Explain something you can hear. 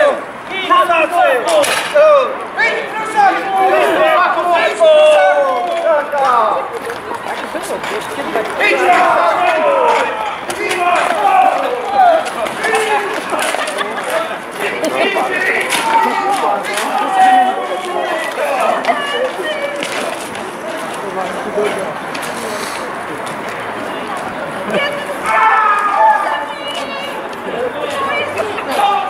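A crowd of men and women chatters and calls out nearby.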